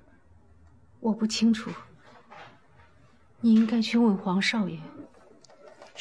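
A middle-aged woman answers calmly.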